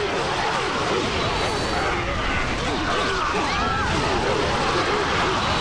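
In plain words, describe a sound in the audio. Magical blasts burst with loud whooshing bangs.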